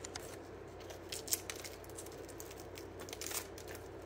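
Crumbly pastry crackles as hands tear it.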